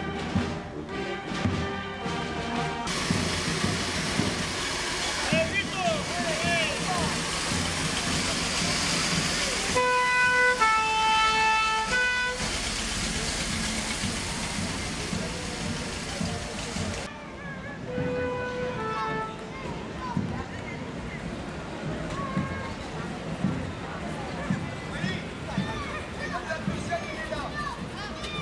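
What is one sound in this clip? A crowd of onlookers chatters nearby.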